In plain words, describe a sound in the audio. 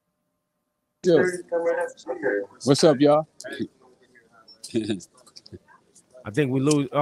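A man laughs and talks with animation over a phone call.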